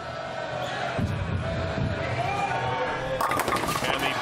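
A bowling ball rolls down a wooden lane.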